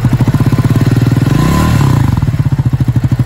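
A motorcycle engine briefly revs up and settles back.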